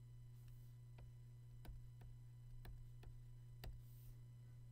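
A pen taps and scratches lightly on a drawing tablet.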